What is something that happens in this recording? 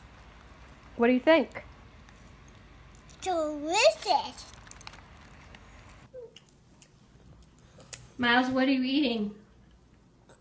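A young child speaks in short bursts close by.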